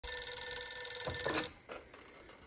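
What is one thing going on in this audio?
An old telephone rings with a bell tone.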